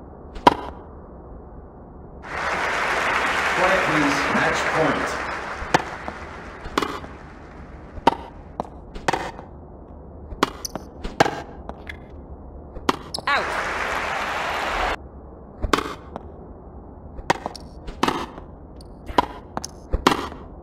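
A tennis racket strikes a ball.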